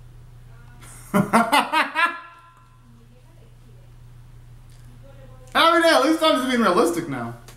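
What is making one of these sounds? A young man sings loudly in short bursts, close by.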